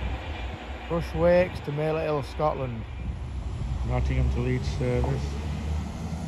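A train horn sounds twice.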